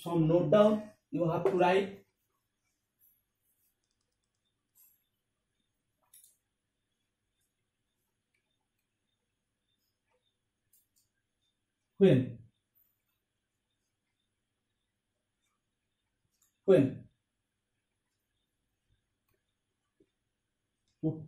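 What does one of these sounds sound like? A young man speaks calmly nearby in short bursts with pauses.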